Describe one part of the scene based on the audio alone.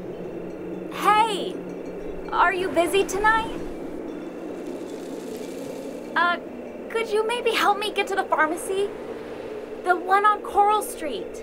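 A young woman speaks with emotion, close up.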